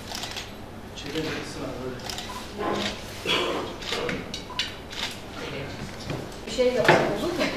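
Several women talk and murmur nearby.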